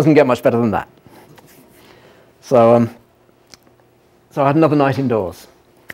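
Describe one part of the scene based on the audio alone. A middle-aged man speaks close up in short bursts with pauses.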